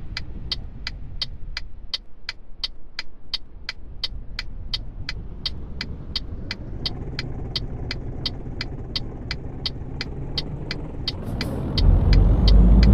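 A truck engine hums steadily while driving, growing louder near the end.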